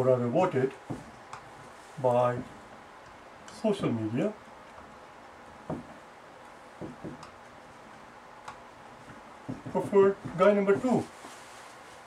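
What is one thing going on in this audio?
A man speaks calmly in short phrases close by.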